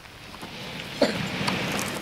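Loose soil slides and pours down with a rushing hiss.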